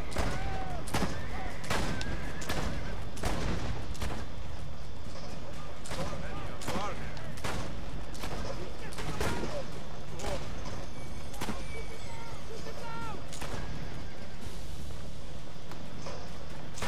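Horses' hooves gallop steadily on a dirt road.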